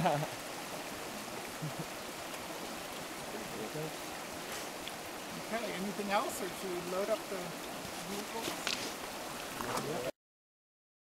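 A shallow creek babbles steadily over stones.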